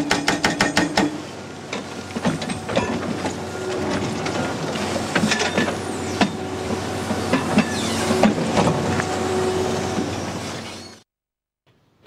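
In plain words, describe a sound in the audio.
Rock fragments crack and tumble down.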